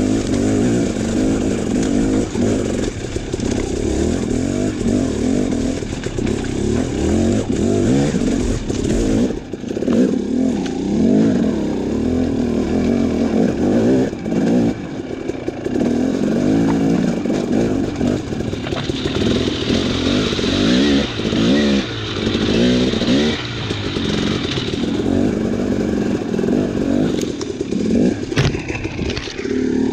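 Tyres crunch over rocks and gravel.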